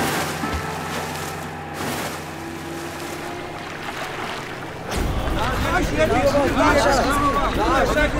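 Water splashes as people swim.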